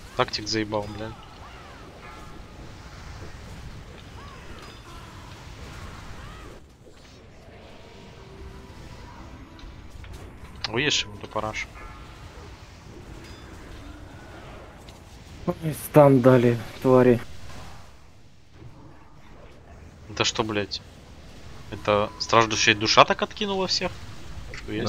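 Magic spells crackle and whoosh in a fantasy game battle.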